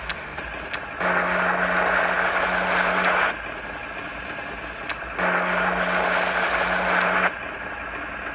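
A small motor buzzes steadily, stopping once and starting again.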